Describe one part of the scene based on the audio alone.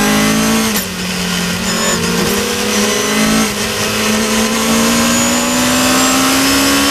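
A race car engine roars loudly up close, its pitch dropping at gear shifts and climbing as it speeds up.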